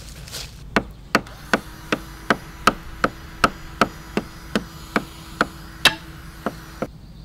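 A hatchet chops into wood with quick, steady blows.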